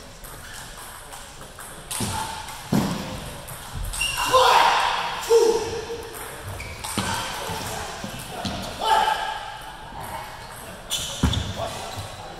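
A ping pong ball clicks back and forth between paddles and the table.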